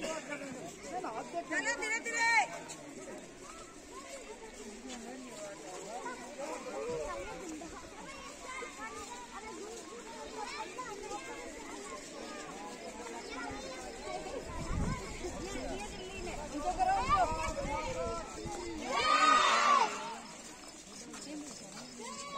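A crowd of children chant and shout loudly outdoors.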